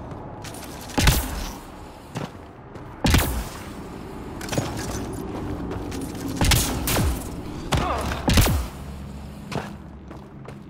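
Heavy footsteps thud on rocky ground.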